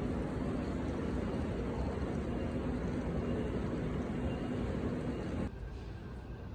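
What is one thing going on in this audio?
Footsteps tap on a hard floor while walking.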